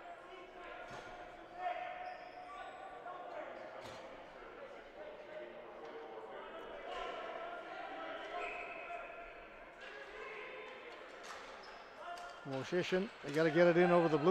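Players shout to each other in a large echoing arena.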